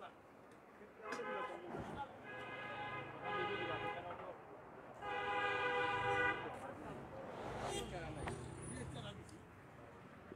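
Men talk further away outdoors.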